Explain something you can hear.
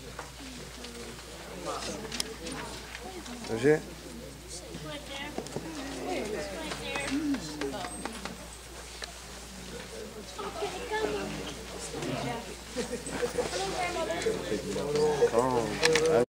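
Several men and women chat and greet each other nearby.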